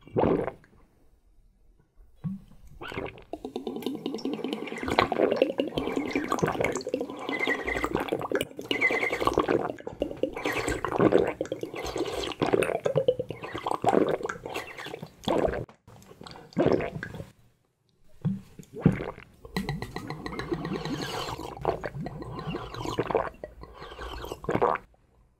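A young man slurps and sucks liquid loudly through a small spout.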